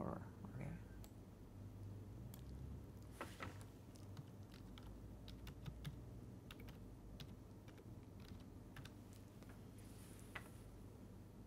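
Keys click softly on a computer keyboard.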